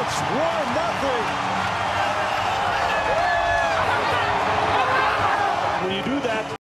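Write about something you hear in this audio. Men shout and whoop with excitement close by.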